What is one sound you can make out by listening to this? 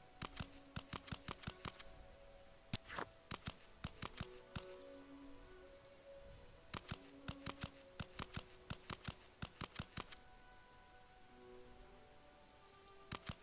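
Sharp interface clicks tick rapidly in bursts.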